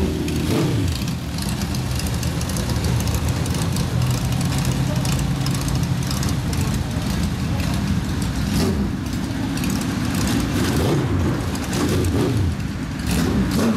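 A motorcycle engine idles with a deep, throbbing rumble.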